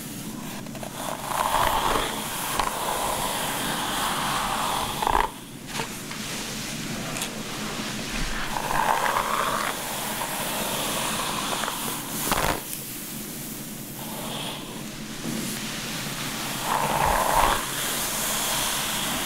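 A brush strokes softly through long hair, close by.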